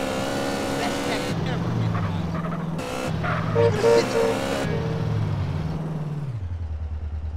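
A motorcycle engine revs and roars as it rides along.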